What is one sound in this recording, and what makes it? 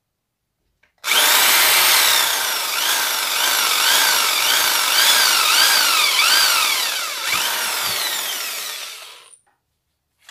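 A power drill whirs loudly, its pitch rising and falling as it bores into metal.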